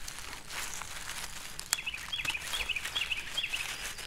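A mushroom stem snaps softly as it is picked.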